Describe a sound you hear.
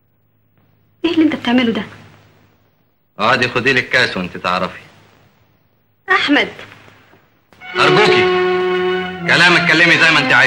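A young woman speaks with rising emotion, close by.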